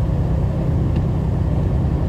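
A windshield wiper sweeps across the glass.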